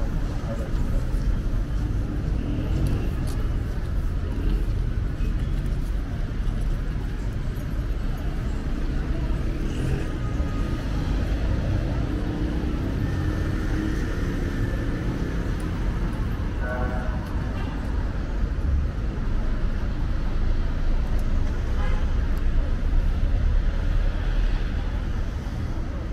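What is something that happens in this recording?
Footsteps walk along a paved street.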